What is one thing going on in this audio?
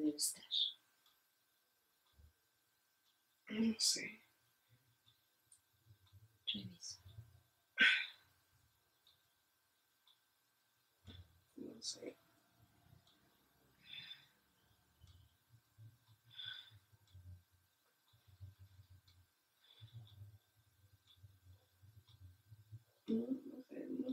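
A woman speaks softly and briefly at close range, with pauses.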